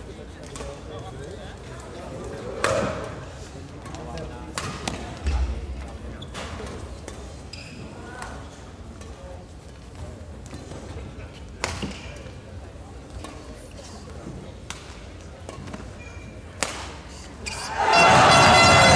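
Players' shoes squeak on a court floor.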